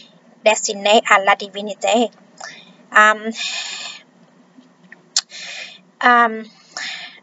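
A woman speaks calmly and close to the microphone, in short bursts with pauses.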